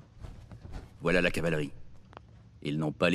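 A man speaks calmly in a deep voice, close by.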